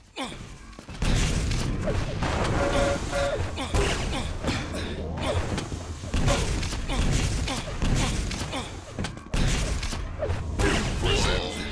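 Energy guns fire in rapid crackling bursts.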